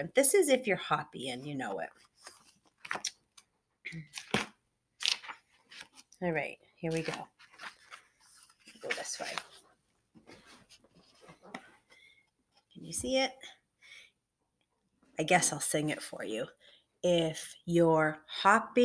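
A young woman reads aloud expressively, close to a laptop microphone.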